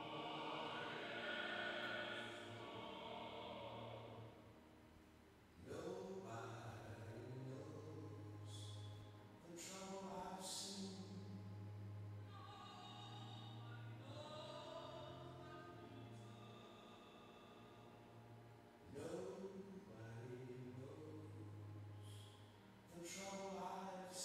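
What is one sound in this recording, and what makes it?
A man chants in long, held notes through a microphone in a large, echoing room.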